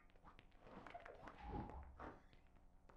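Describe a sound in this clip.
A small explosion bursts with a low thud.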